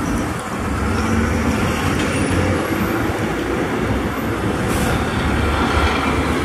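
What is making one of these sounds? Truck tyres roll over the road.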